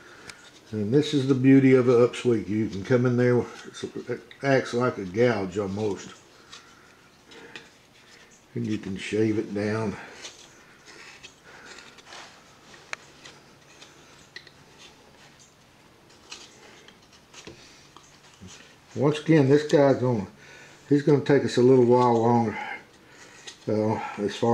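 A carving knife scrapes and shaves wood in short, quiet strokes.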